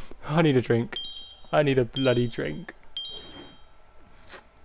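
Short electronic chimes beep once a second as a game countdown ticks down.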